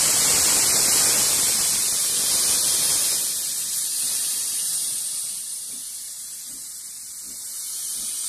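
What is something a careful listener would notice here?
Steam hisses loudly from a steam locomotive.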